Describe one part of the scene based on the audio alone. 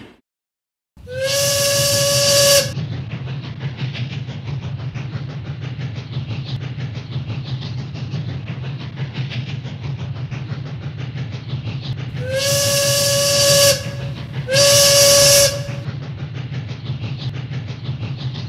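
A steam engine chugs steadily along the rails.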